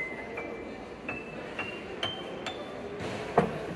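A child plays single notes on a piano, stepping upward.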